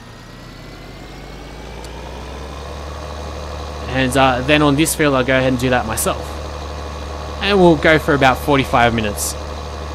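A tractor engine hums steadily, slowly growing louder.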